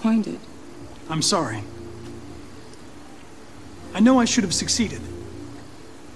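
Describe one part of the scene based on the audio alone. A young man speaks softly and apologetically.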